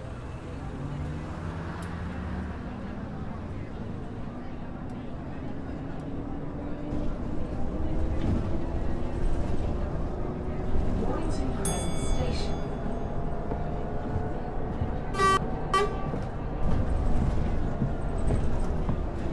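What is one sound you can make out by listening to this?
A bus engine hums and rises in pitch as the bus drives along.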